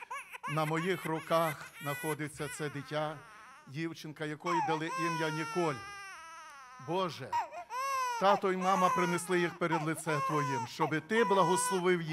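A baby cries loudly.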